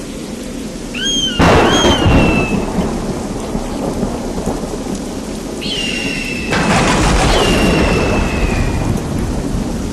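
An eagle gives shrill, drawn-out screeches.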